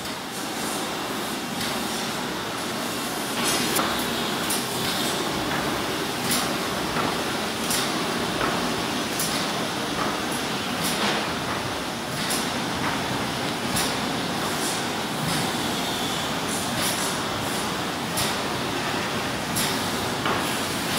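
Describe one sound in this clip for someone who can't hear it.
Metal parts of a machine click and clatter at a steady pace.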